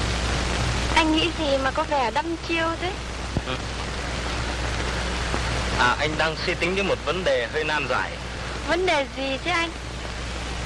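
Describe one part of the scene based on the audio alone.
A young woman speaks warmly and cheerfully.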